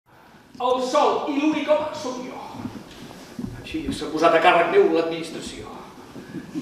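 A middle-aged man speaks loudly and theatrically in a large hall.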